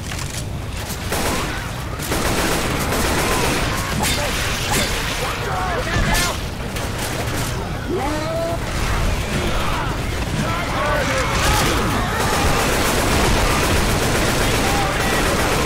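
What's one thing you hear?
Rapid gunfire bangs in short bursts.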